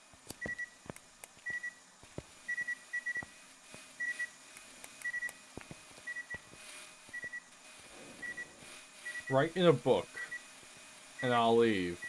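A lighter flame burns with a soft hiss.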